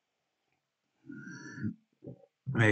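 A man sips a drink from a mug.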